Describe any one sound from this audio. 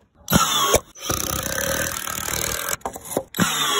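A cordless drill drives a screw into wood.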